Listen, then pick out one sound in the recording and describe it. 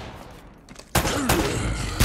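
A pistol fires a single shot.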